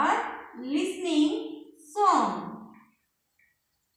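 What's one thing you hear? A young woman speaks clearly, as if teaching, close by.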